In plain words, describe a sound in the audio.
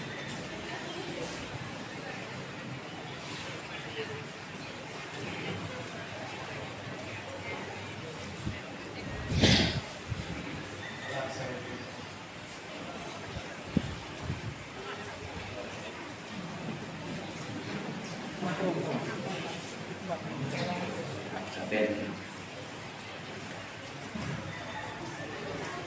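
People murmur quietly in an echoing hall.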